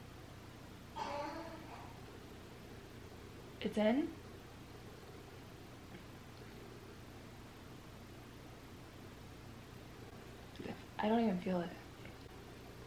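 A woman speaks briefly and softly close by.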